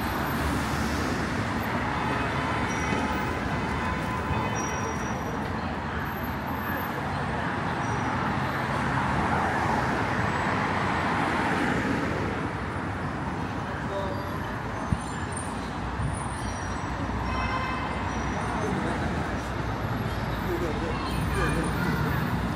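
City traffic rumbles steadily on a road nearby.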